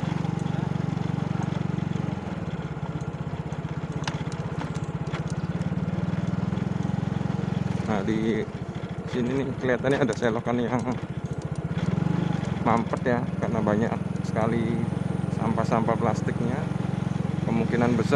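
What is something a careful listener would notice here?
A motorcycle engine drones steadily close by.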